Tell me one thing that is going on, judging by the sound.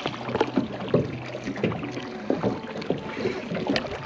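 A fishing reel clicks and rattles as it is handled.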